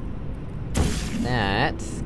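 A gun fires with a sharp electronic zap.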